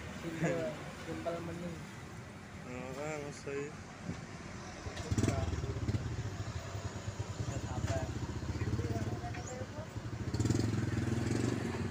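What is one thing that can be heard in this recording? A diesel light dump truck drives past.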